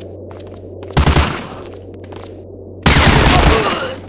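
A submachine gun fires loud rapid bursts.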